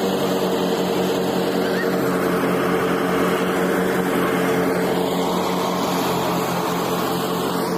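A threshing machine roars and rattles.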